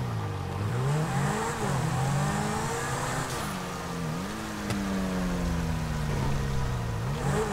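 Tyres hiss on wet pavement.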